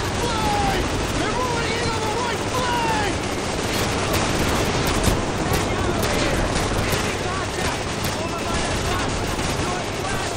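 A helicopter's rotors thud in the distance.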